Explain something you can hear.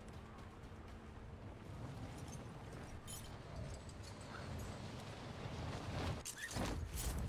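Wind rushes loudly during a freefall.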